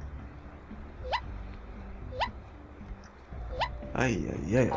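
A cartoon worm jumps with a short rising whoop.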